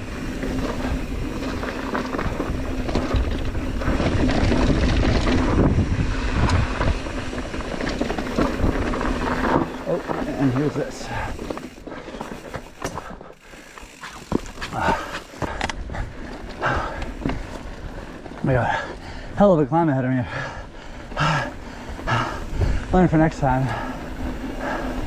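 Bike tyres crunch and rumble over a dirt and gravel trail.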